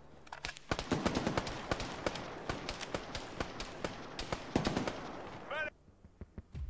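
Gunfire crackles in rapid bursts nearby.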